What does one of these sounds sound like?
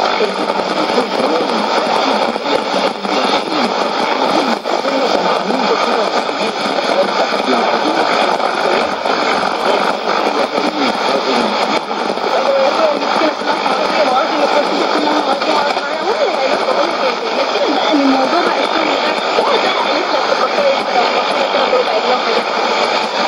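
A shortwave radio plays a faint, crackly broadcast with steady hiss and fading.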